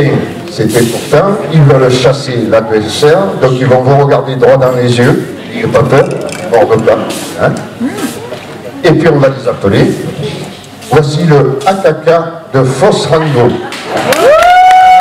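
An elderly man speaks loudly in a large echoing hall.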